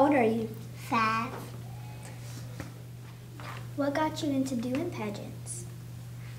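A young girl speaks close to a microphone in short, lively phrases.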